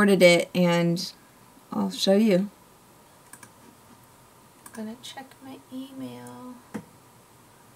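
A young woman talks close to a microphone, first brightly and then more quietly.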